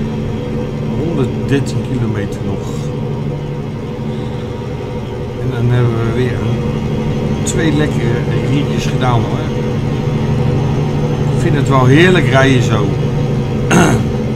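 A middle-aged man talks now and then into a microphone.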